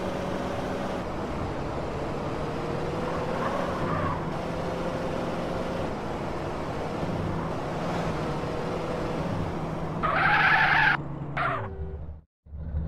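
A car engine drones steadily as a car drives along.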